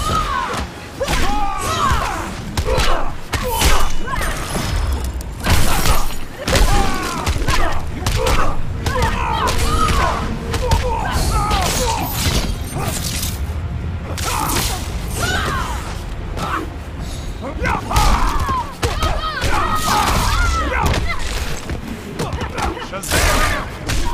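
Punches and kicks land with heavy, booming thuds in quick bursts.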